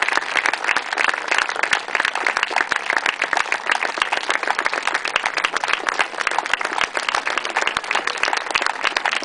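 A crowd claps steadily outdoors.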